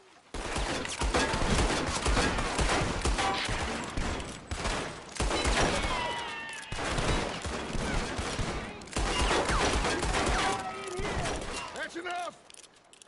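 Gunshots crack rapidly in a fierce exchange of fire.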